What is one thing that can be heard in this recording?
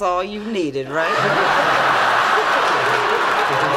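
Young men laugh loudly.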